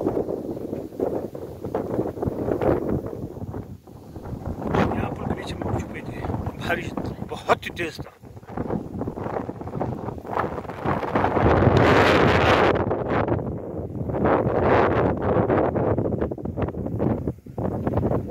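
Wind gusts outdoors and buffets the microphone.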